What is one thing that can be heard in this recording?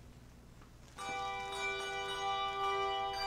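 A small choir of men and women starts to sing together in a large, echoing hall.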